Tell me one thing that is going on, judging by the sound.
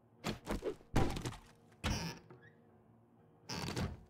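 A wooden cupboard door opens.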